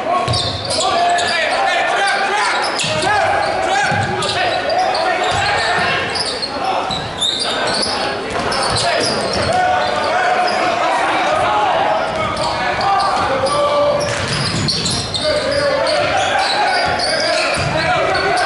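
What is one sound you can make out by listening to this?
A crowd murmurs and chatters in an echoing gym.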